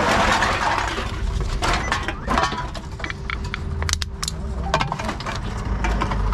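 Cans and plastic bottles clatter and clink.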